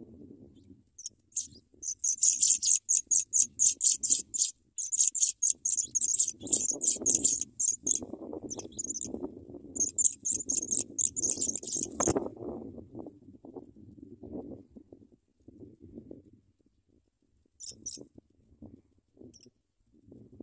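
Nestling birds cheep rapidly and shrilly, begging for food close by.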